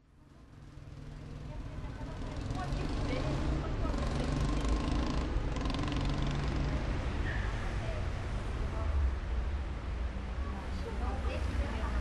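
Street noise and distant traffic rumble steadily outdoors.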